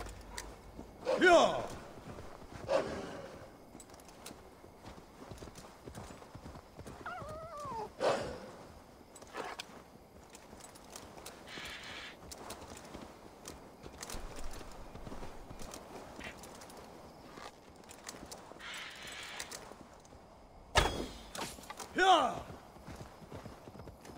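A horse's hooves thud steadily as it gallops.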